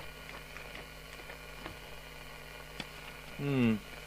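Paper pages rustle as they are flipped through.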